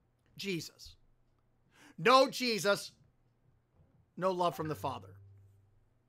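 A man speaks calmly and expressively into a close microphone.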